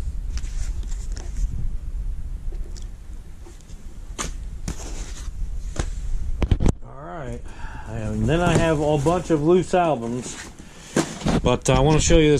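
Paper record sleeves rustle and slide as they are handled.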